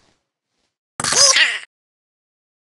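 A short bright victory jingle plays.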